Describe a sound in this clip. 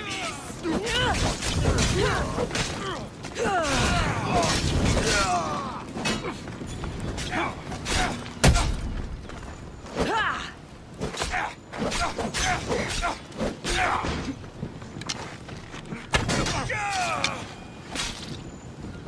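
Men grunt and shout as they fight.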